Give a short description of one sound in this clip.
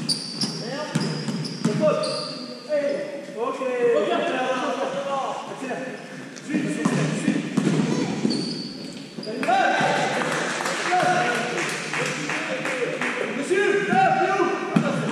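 A ball thuds as it is kicked and bounces.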